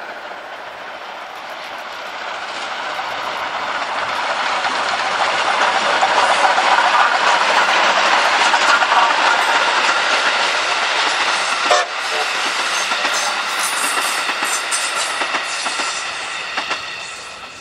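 A steam locomotive chugs and puffs loudly as it passes close by.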